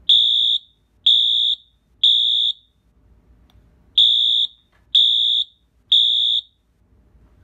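A fire alarm horn sounds loud, sharp beeps in a repeating pattern of three.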